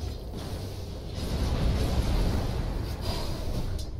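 Game explosions burst loudly.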